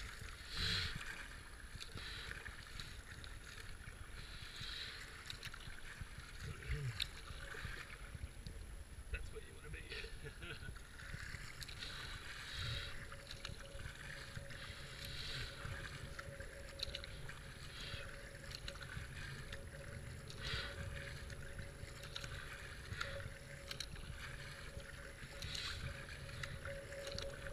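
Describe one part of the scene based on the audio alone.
A paddle splashes into the water in a steady rhythm.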